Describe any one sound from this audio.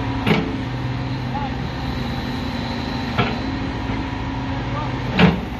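A diesel backhoe loader engine idles.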